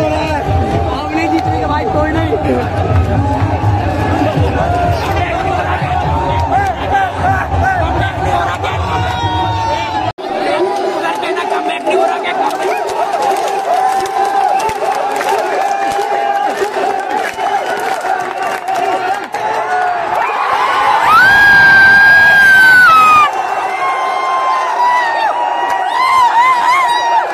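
A large crowd of young men chants and cheers loudly in a big echoing arena.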